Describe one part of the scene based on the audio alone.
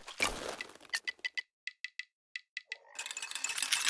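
Short clicks tick in quick succession.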